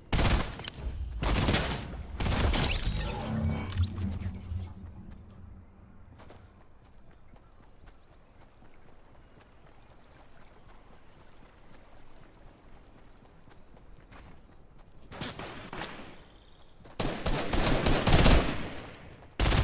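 Video game automatic rifle fire crackles in bursts.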